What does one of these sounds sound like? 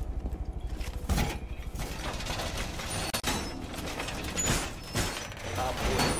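Heavy metal panels clank and slam into place.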